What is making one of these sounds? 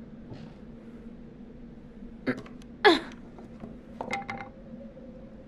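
A loose wooden board creaks and clatters as it is pulled up.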